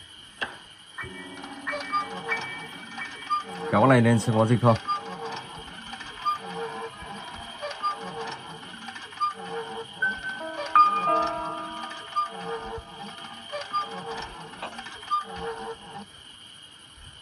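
A wooden well winch creaks and rattles in a steady rhythm.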